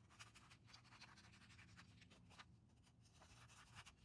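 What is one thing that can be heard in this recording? Scissors snip through sandpaper.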